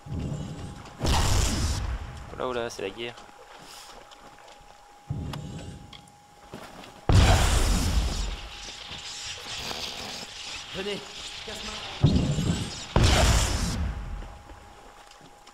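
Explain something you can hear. Magic bursts whoosh and crackle in loud swells.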